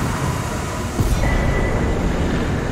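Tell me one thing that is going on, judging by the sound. A sharp chime rings out as a foe falls.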